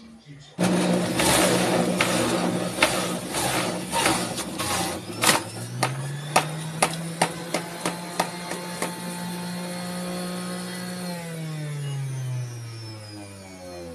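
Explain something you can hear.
A juicer motor whirs loudly and then winds down.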